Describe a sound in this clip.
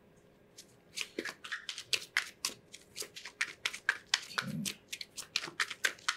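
Playing cards riffle and flick as they are shuffled.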